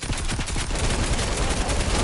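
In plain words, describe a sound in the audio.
Gunfire cracks from a video game.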